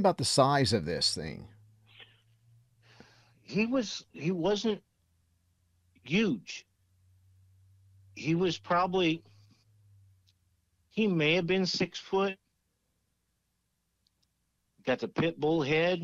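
A middle-aged man talks calmly and close into a microphone, in short bursts with pauses.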